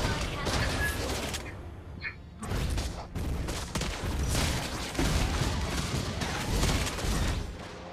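Video game battle effects clash and zap.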